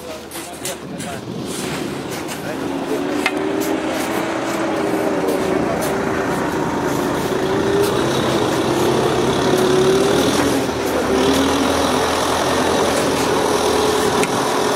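Shovels scrape and dig into soil.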